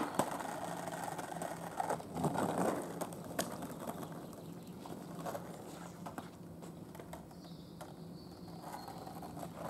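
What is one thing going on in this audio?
Skateboard wheels roll and rumble over asphalt, fading as the skater moves away.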